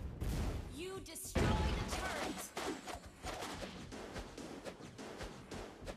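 Game sound effects of spells and hits crackle and burst in quick succession.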